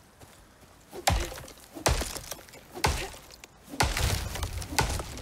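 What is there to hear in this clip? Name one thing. An axe chops into a tree trunk with heavy, regular thuds.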